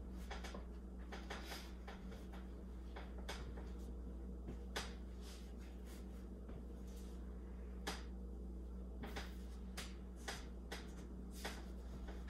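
An eraser rubs across a whiteboard.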